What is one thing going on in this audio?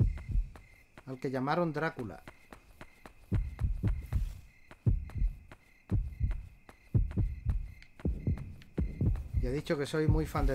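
Footsteps thud at a steady walking pace.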